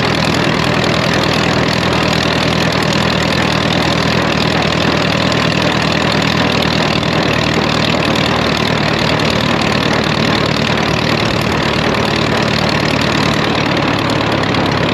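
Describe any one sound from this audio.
A tractor engine runs with a steady, loud drone.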